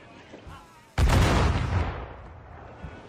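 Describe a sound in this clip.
A cannon fires with a deep, loud boom.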